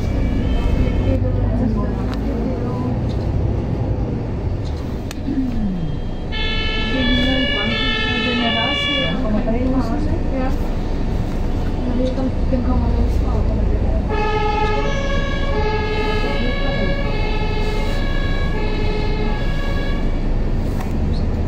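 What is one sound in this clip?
A vehicle engine hums steadily with road noise as it drives.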